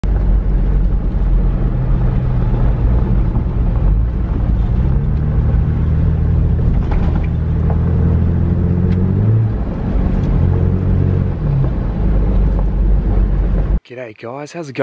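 A car engine hums steadily while driving on a rough dirt road.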